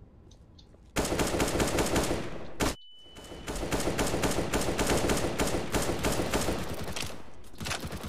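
Loud gunfire and explosions from a game rattle and boom.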